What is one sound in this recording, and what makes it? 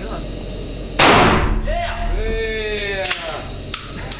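A shotgun fires another booming blast that echoes.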